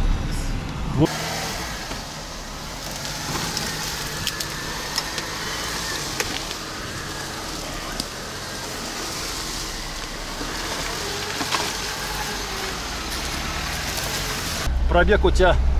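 An off-road car engine revs while driving through bushes outdoors.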